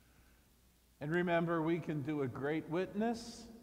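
An elderly man speaks calmly through a microphone in a large, echoing hall.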